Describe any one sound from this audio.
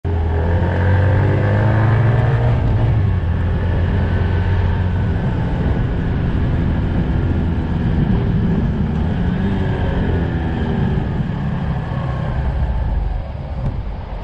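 A motorcycle engine hums close by, rising and falling in pitch as it speeds up and slows down.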